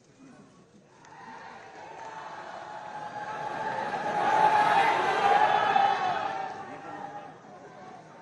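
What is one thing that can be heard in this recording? A crowd applauds and cheers in a large hall.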